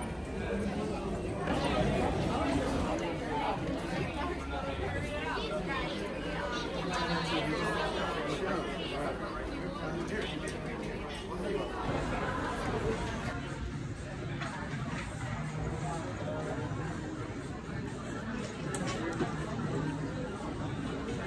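A crowd of shoppers chatters and murmurs indoors.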